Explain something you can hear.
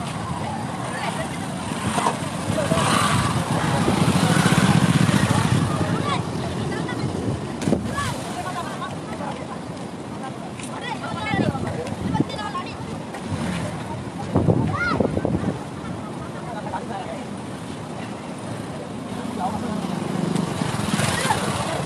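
Several young men chatter and call out nearby outdoors.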